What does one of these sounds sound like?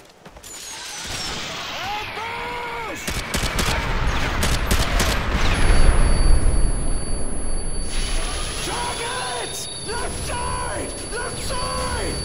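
A large explosion booms and rumbles.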